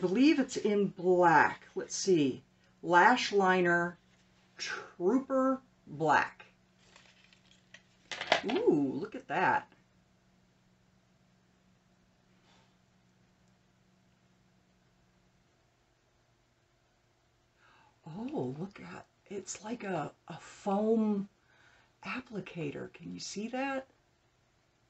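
A middle-aged woman talks calmly and clearly into a close microphone, with pauses.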